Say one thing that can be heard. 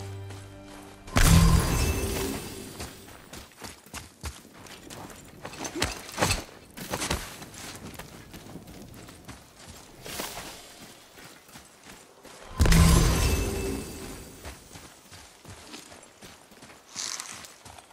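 Footsteps crunch over snow and gravel.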